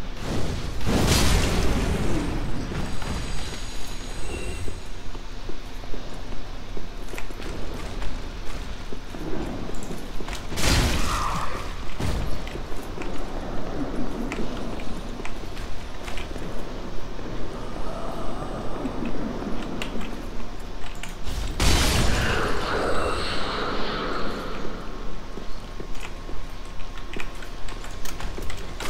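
Armoured footsteps clank at a steady running pace.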